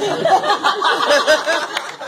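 A woman laughs out loud.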